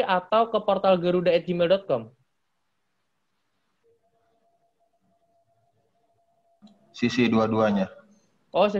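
A man talks calmly and close to a microphone, pausing between phrases.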